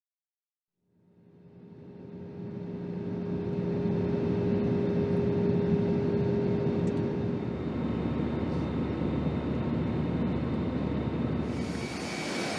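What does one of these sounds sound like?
A jet engine roars steadily from outside an aircraft cabin.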